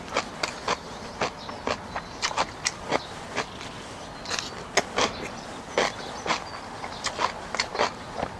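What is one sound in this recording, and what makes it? Chopsticks clink against a plate.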